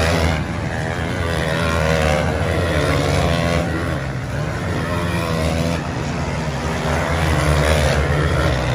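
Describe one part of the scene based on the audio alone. Motorcycle engines roar and whine as dirt bikes race past.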